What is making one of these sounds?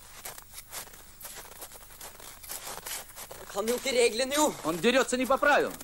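Footsteps crunch in snow.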